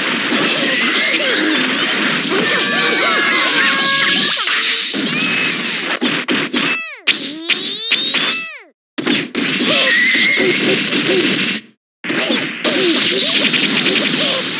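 Rapid blows thud and smack.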